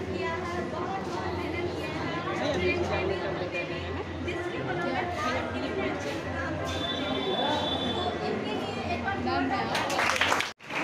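A young woman sings into a microphone through loudspeakers in an echoing hall.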